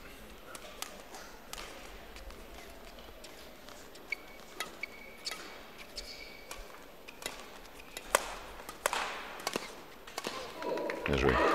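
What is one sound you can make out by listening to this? A shuttlecock is struck sharply back and forth by rackets.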